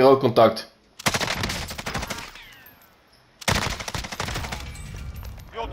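A rifle fires rapid bursts of gunshots.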